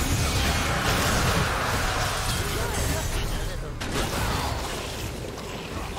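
Game spell effects burst and crackle in a fight.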